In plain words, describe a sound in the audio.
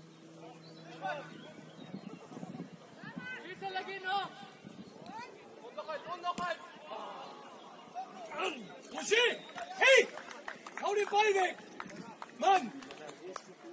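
Young men shout to each other from a distance outdoors.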